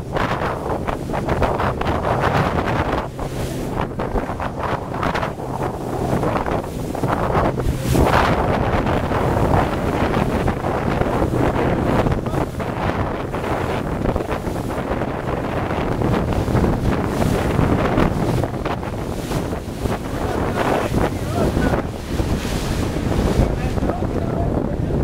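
Choppy waves slap against the hull of a small boat.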